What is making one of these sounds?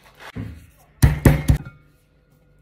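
A stone pestle pounds nuts in a mortar.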